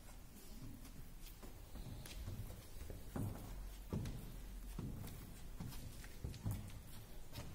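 A hand sprayer hisses as it sprays.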